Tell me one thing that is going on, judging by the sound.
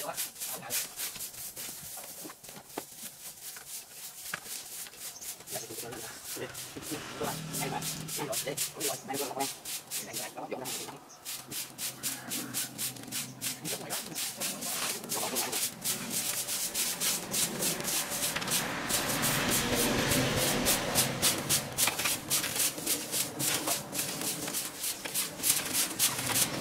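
Brooms sweep and scratch over dry leaves on the ground.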